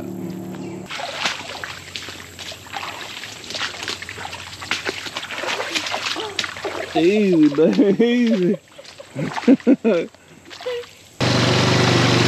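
Boots splash and squelch through shallow water and brush.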